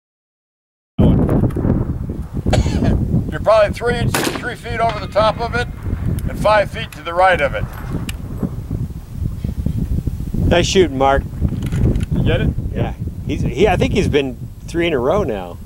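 A rifle fires loud shots outdoors.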